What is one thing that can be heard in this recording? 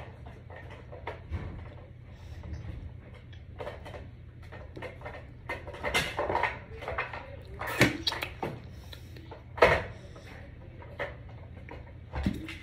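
A child gulps a drink from a plastic bottle.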